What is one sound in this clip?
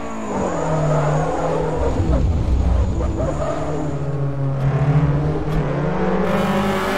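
A racing car engine roars loudly, revving up and down through the gears.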